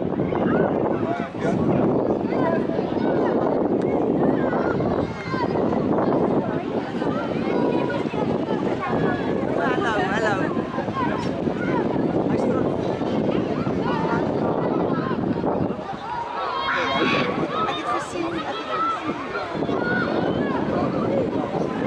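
Young children shout and call out outdoors.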